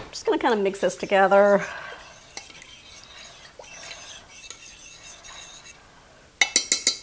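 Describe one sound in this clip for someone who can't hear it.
A spoon stirs thick sauce in a pot with soft squelches.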